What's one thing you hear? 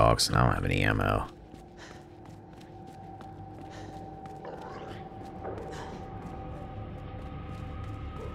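Footsteps tread slowly on a hard floor in a quiet, echoing corridor.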